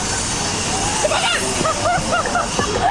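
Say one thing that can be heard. A child shouts and squeals playfully outdoors.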